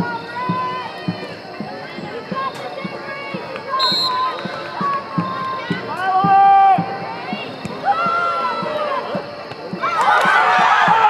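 A crowd of spectators calls out and chatters outdoors.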